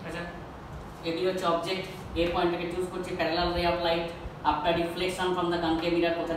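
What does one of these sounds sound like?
An adult man explains close to a clip-on microphone.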